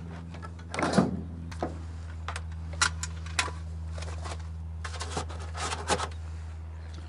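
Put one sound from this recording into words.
A hand knocks and taps on a metal aircraft panel.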